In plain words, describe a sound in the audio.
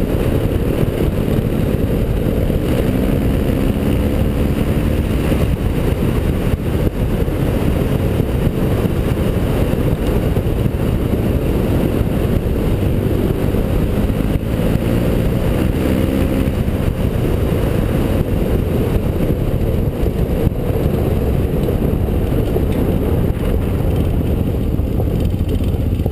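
Tyres crunch on a gravel road.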